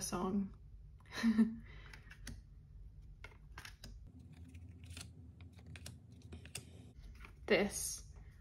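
Playing cards rustle and tap softly as they are handled.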